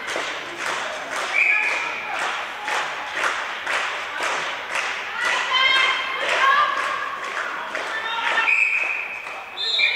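A volleyball is struck with a thud in an echoing hall.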